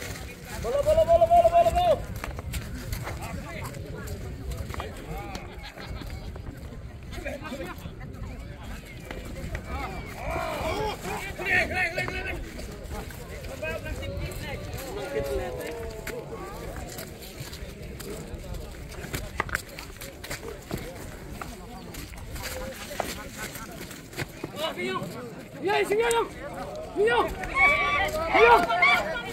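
Men shout and call out excitedly outdoors.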